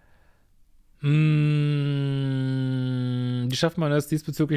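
A man hums a long steady note close to a microphone.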